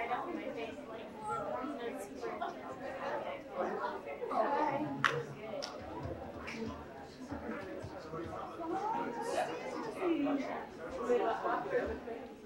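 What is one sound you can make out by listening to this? A crowd of adults chatters and talks nearby in a hall.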